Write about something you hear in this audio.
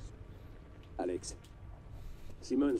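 A young man speaks briefly and quietly into a microphone.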